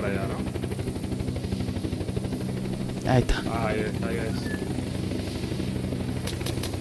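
A helicopter's rotor thumps steadily with a droning engine hum.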